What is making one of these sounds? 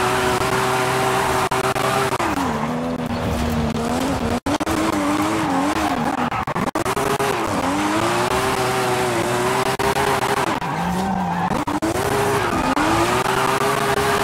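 A car engine revs high and rises and falls in pitch as the car drifts.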